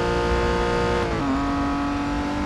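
A racing car engine drops in pitch as the driver shifts gear.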